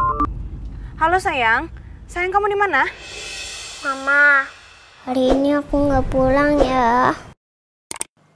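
A young woman talks anxiously into a phone.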